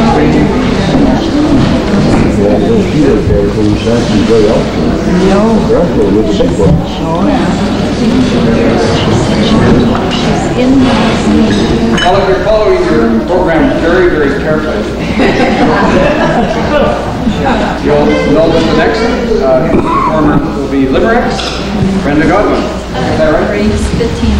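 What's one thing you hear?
A crowd of elderly people chatters in a large echoing hall.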